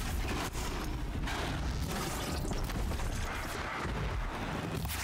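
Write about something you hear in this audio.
Energy blasts crackle and hiss during a fight.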